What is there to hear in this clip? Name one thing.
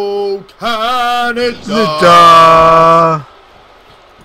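A man sings loudly into a microphone in long, wavering notes.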